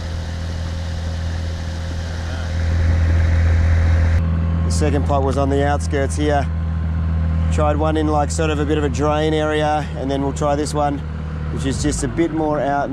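An outboard motor hums steadily, then cuts out.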